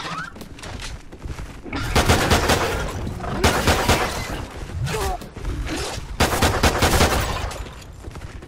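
A creature shrieks and snarls.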